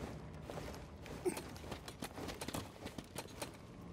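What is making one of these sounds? Hands scrape and grip against rock while climbing.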